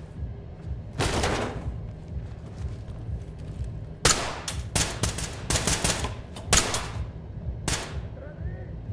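A rifle fires loud bursts of gunshots.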